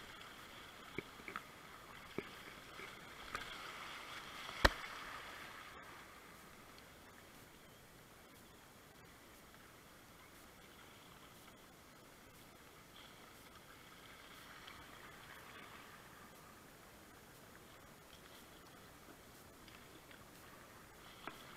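A paddle splashes and knocks against the water.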